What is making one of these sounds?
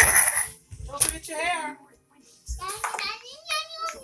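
Pool balls clack sharply against each other.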